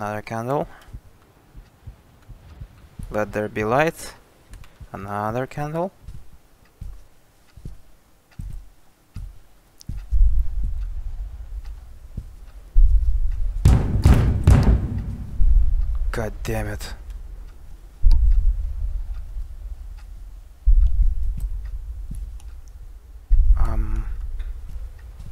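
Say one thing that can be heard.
A young man talks close to a microphone, with short pauses.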